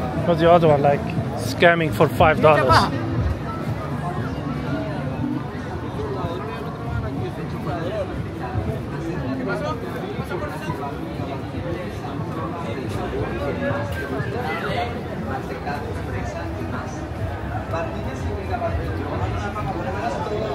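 A crowd murmurs and chatters outdoors on a busy street.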